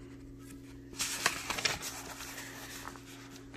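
A paper page rustles as it is turned.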